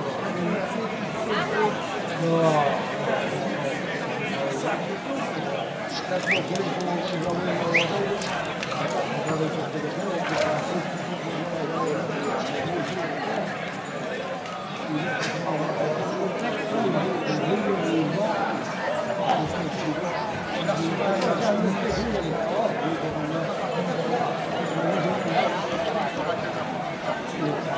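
A crowd of men and women chatters throughout, outdoors.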